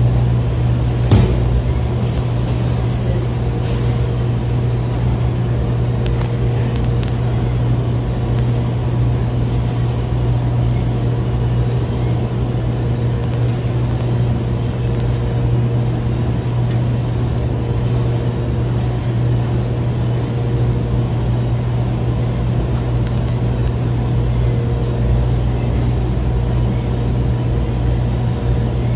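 A tumble dryer hums and rumbles steadily.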